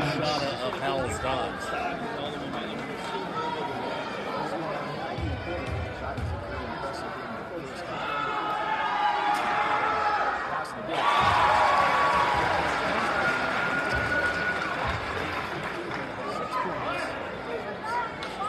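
A crowd of spectators chatters and cheers in a large echoing gym.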